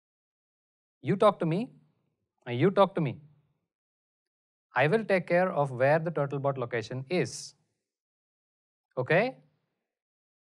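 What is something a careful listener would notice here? A man speaks calmly and clearly, close to a microphone, in short phrases with pauses.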